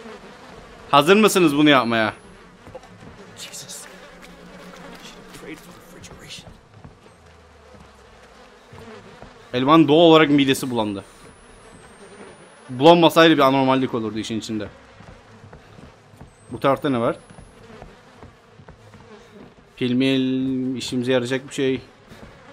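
A young man talks expressively, close to a microphone, in short bursts.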